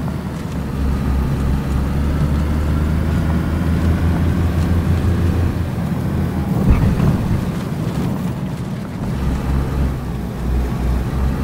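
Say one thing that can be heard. Tyres rumble over rough dirt ground.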